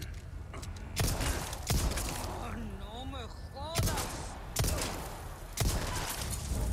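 Pistol shots bang out one after another with a ringing echo.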